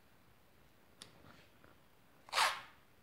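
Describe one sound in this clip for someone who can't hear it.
Tape crinkles and rips from a roll close by.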